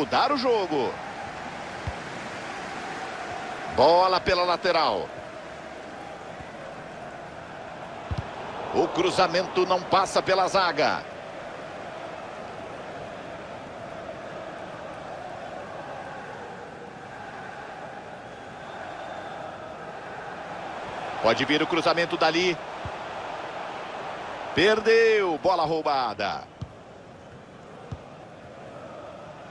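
A large stadium crowd roars and chants steadily in the distance.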